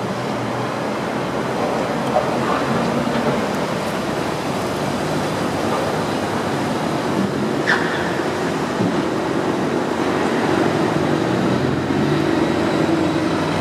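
City traffic hums steadily outdoors, with cars driving along a wide street.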